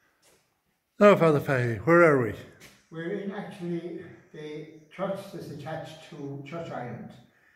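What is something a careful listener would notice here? An elderly man speaks calmly and clearly, close by, in an echoing stone room.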